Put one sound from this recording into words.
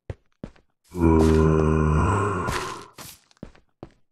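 A zombie groans loudly nearby.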